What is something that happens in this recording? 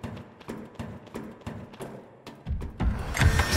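Metal ladder rungs clank rhythmically under climbing steps.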